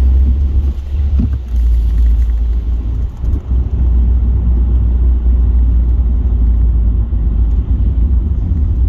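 A car's engine rumbles low and steady from inside while driving.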